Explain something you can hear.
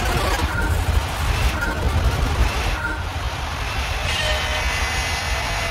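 A racing car engine rumbles and revs loudly.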